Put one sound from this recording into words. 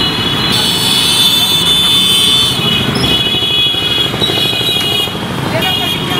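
An auto-rickshaw engine putters past.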